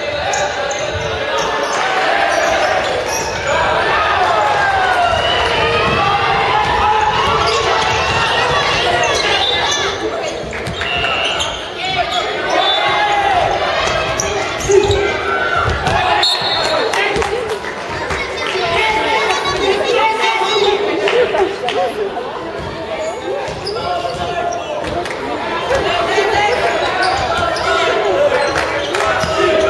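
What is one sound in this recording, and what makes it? A crowd of spectators shouts and cheers loudly in an echoing hall.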